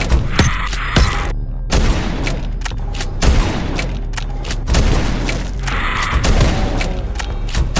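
A shotgun fires with loud, sharp blasts.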